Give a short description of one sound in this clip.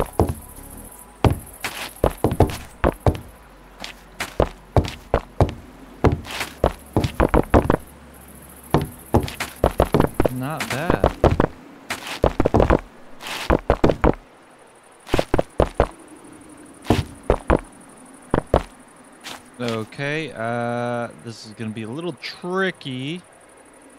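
Stone blocks are placed one after another with quick, sharp knocks.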